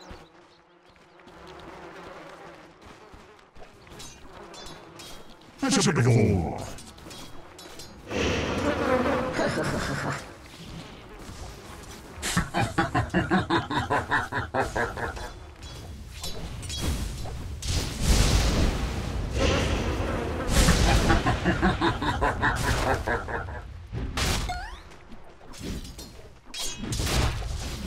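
Game spell effects crackle and whoosh during a fight.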